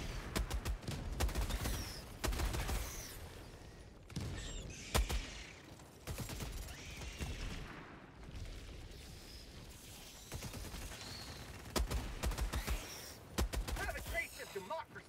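Rapid gunfire bursts out in quick volleys.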